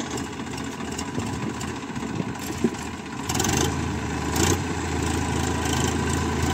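A tractor engine rumbles steadily close by, growing louder.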